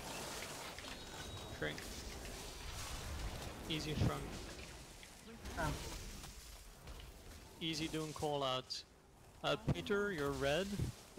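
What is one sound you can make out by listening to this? Magic spells whoosh and crackle in a busy video game battle.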